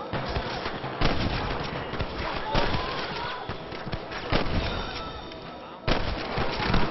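A gun fires loud shots that echo.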